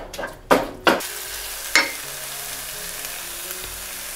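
A wooden spoon stirs food in a pan.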